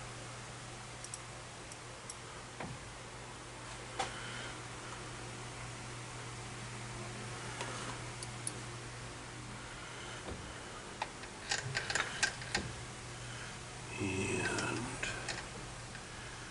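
Small metal chips tinkle and click.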